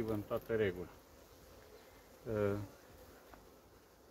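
A wooden hive cover scrapes as it is lifted off.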